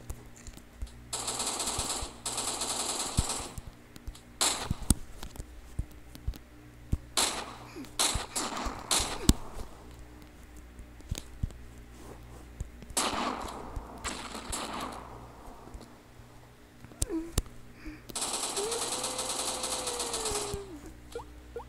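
Gunshots from a rifle fire in quick bursts.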